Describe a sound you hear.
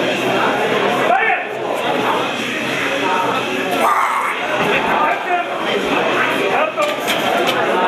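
Men nearby shout encouragement loudly.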